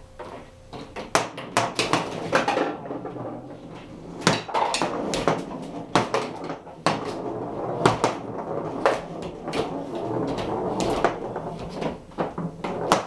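A foosball ball clacks sharply against the table's rods and walls.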